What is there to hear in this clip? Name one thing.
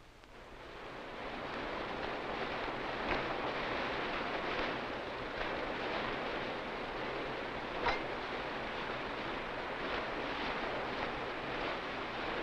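Waves rush and splash along a ship's hull at sea.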